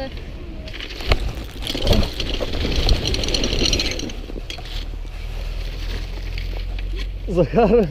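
Bicycle tyres crunch over packed snow.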